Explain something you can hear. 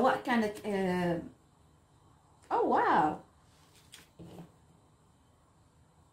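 Cards are laid down softly on a table.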